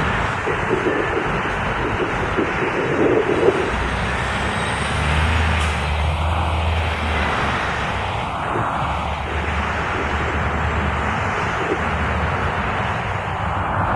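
A bus engine rumbles as the bus pulls away.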